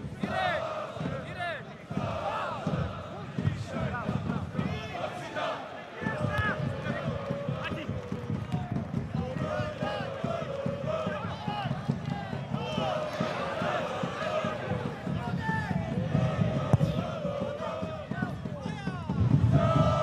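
Footballers shout to each other across an open outdoor pitch.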